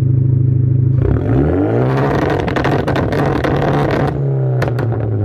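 A car engine revs up hard with a loud roar from the exhaust, then drops back.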